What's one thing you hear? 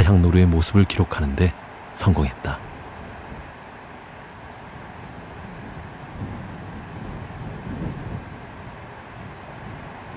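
Dry leaves rustle under an animal's hooves.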